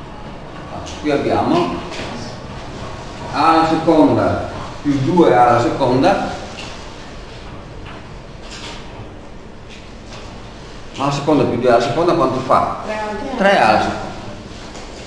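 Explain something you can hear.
A man speaks calmly in short bursts, as if explaining a lesson.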